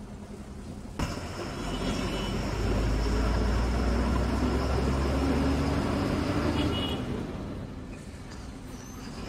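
A bus engine roars louder as the bus speeds up along a road.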